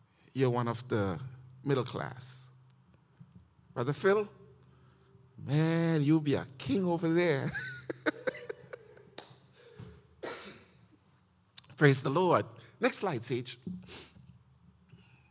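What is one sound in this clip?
A man speaks warmly into a microphone in an echoing hall.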